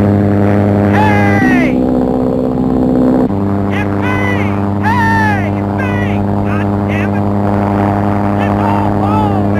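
A man shouts excitedly over the engine noise.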